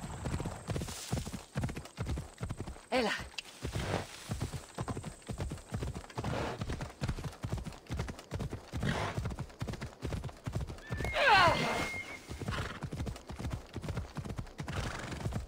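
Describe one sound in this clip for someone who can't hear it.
Horse hooves thud steadily on rocky ground.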